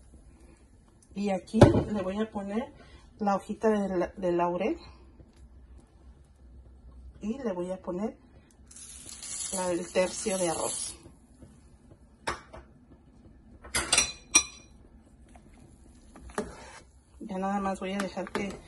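Liquid boils and bubbles steadily in a pot.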